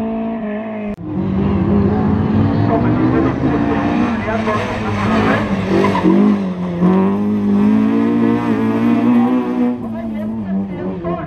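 A second rally car engine snarls and revs aggressively nearby.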